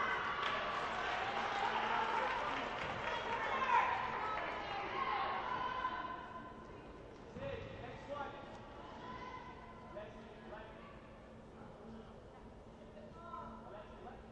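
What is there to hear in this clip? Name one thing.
Players' shoes squeak sharply on a hard court.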